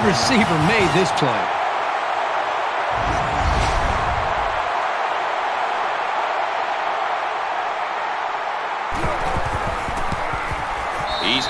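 A large crowd roars steadily.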